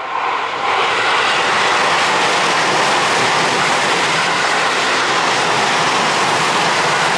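A passing train roars loudly and steadily close by.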